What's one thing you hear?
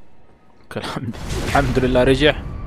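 A sword slashes with a crackling magical burst.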